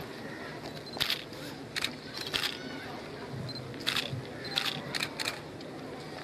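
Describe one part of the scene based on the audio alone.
A large crowd murmurs faintly in the distance outdoors.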